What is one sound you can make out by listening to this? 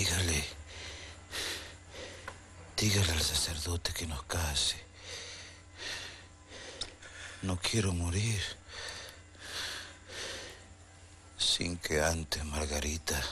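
A woman speaks softly and with worry, close by.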